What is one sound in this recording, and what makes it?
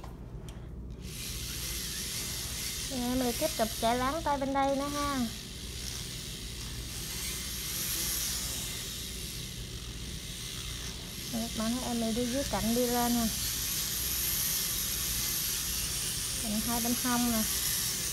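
An electric nail drill whirs steadily with a high hiss.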